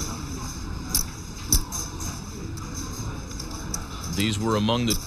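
Poker chips click together.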